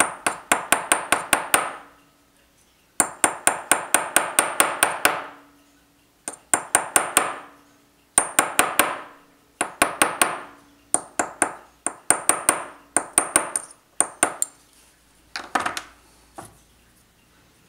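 A small watch mechanism clicks and ratchets rapidly in short bursts as it is wound by hand.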